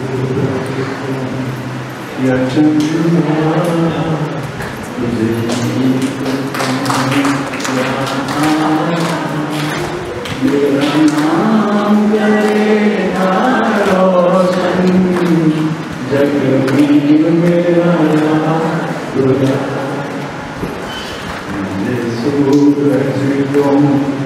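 An elderly man speaks steadily into a microphone, heard through loudspeakers in an echoing hall.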